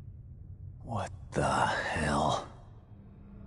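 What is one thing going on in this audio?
A man exclaims in a startled voice.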